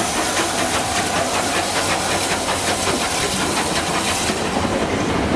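Steam hisses loudly from a steam locomotive.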